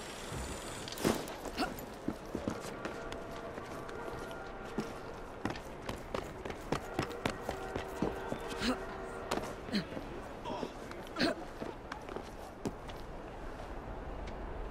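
Quick footsteps patter and scrape on roof tiles.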